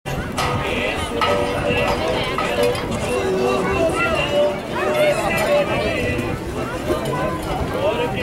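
A crowd of men and women chatters and calls out outdoors.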